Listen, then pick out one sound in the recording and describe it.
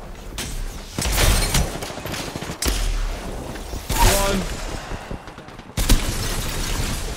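Gunshots fire in loud bursts.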